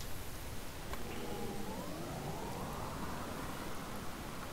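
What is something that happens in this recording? An electric car whirs as it drives off, its whine rising in pitch.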